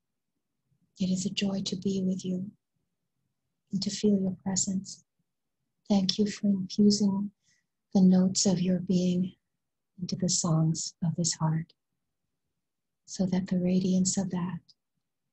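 A woman speaks calmly and softly into a close microphone.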